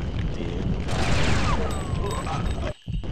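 A gun fires a short burst of shots.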